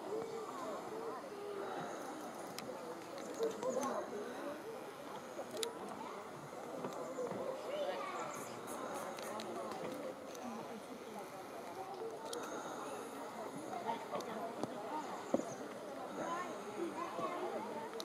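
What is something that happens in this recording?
Leaves rustle softly in a light breeze.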